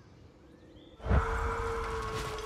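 Water rushes and splashes from a waterfall nearby.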